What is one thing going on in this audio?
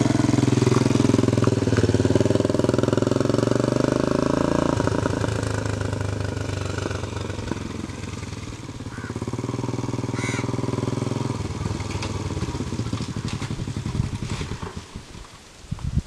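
A motorcycle engine hums as the bike rides away and then comes back and stops.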